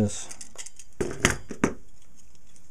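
Hard plastic parts click and tap together in hands.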